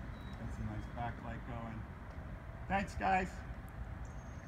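A man speaks briefly outdoors, a short way off.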